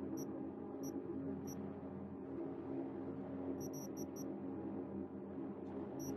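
Short electronic menu blips sound several times.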